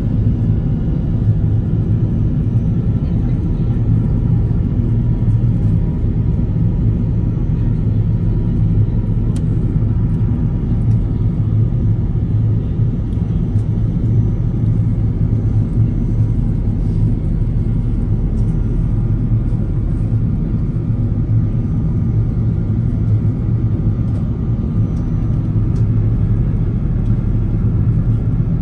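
Jet engines roar with a steady, low drone inside an airliner cabin.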